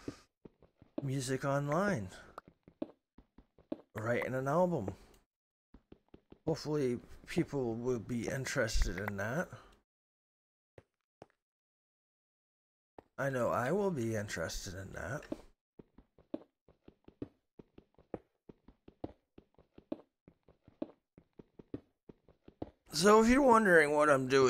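A pickaxe taps rapidly on stone blocks.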